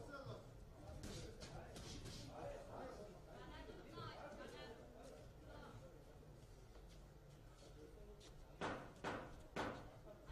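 Boxing gloves thump against each other and the body in quick punches.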